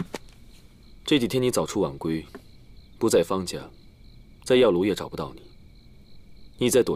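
A second young man answers calmly, close by.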